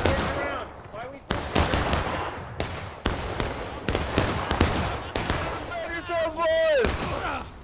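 Men shout loudly nearby.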